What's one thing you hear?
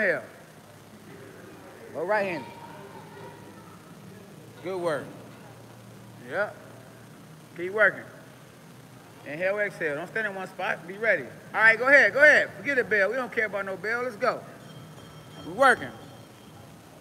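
A man talks loudly and with animation nearby, in an echoing hall.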